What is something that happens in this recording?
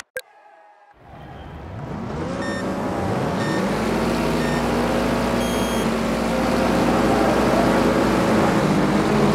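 Many car engines rumble and rev loudly, rising as the cars pull away.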